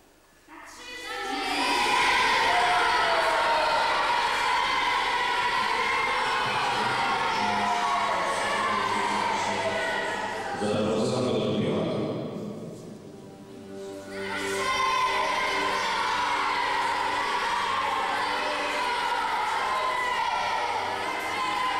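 A group of young voices sings together in a large echoing hall.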